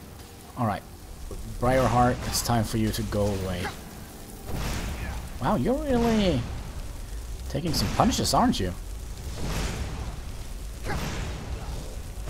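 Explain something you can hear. Fireballs whoosh and burst.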